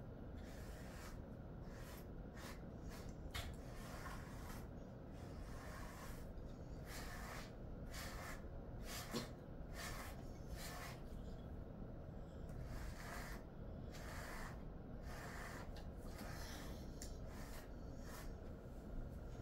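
A brush rasps softly through a dog's fur in short strokes.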